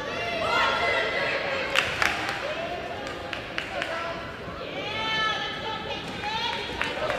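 A crowd chatters in a large echoing gym.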